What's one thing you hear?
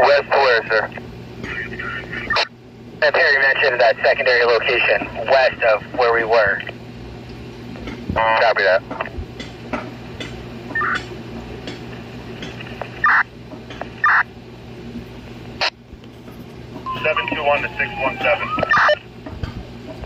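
Radio chatter comes in bursts through the small, tinny speaker of a handheld two-way radio.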